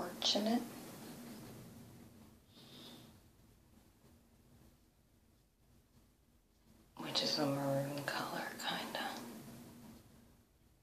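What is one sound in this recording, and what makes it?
A young woman talks calmly and softly, close by.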